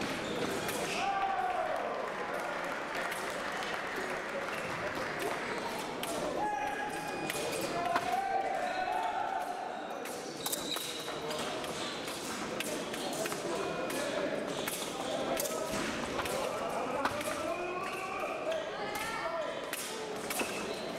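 Fencers' shoes squeak and tap on a hard floor in an echoing hall.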